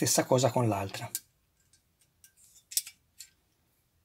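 Small plastic parts click together by hand.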